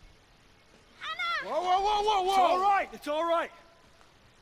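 A man shouts in loud, wavering cries.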